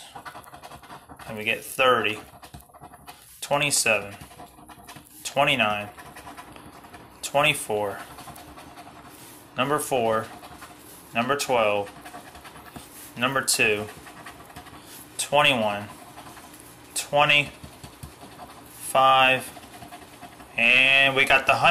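A coin scrapes across a scratch card.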